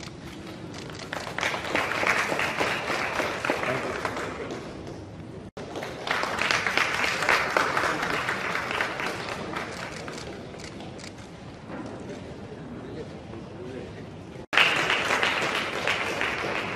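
A small crowd applauds in a room.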